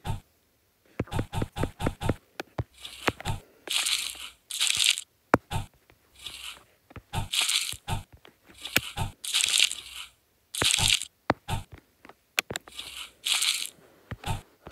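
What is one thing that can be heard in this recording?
Candies clatter and rattle as they drop into a bag.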